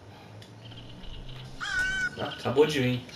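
A crow caws loudly nearby.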